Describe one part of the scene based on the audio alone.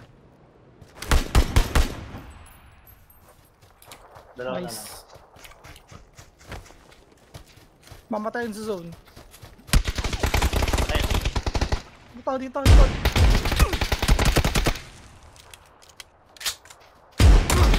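A rifle fires loud rapid bursts of shots.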